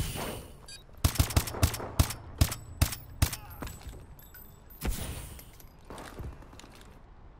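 Gunshots ring out in quick, sharp bursts.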